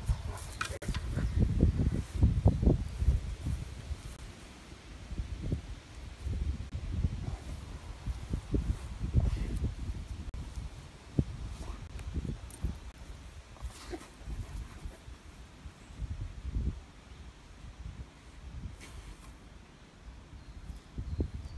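A dog sniffs and snuffles close by.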